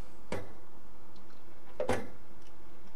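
A screwdriver clicks as it turns a screw.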